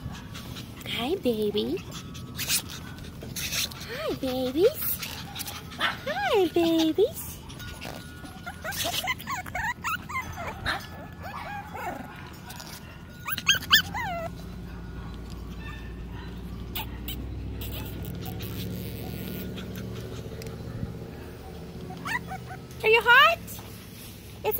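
Small puppies whimper and yip in high, wavering cries.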